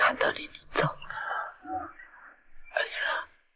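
A middle-aged woman speaks weakly and pleadingly.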